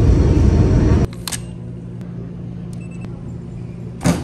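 A vending machine hums steadily.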